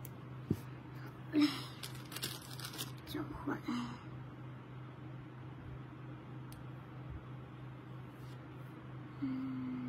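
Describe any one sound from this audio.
Hands rub and rustle against fabric.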